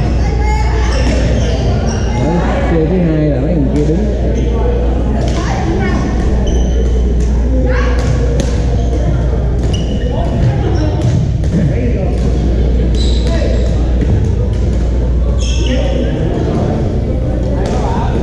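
Paddles pop sharply against a plastic ball, echoing in a large hall.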